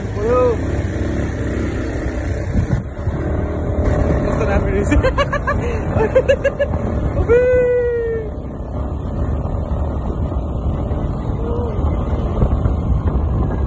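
A young man talks and laughs close by, outdoors.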